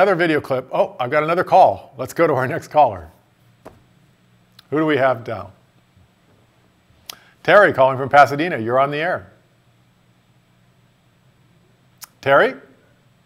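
A middle-aged man talks calmly and clearly into a microphone.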